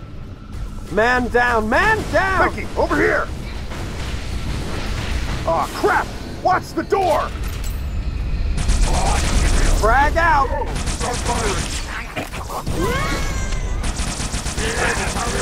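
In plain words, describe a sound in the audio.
A futuristic gun fires in bursts of warbling zaps.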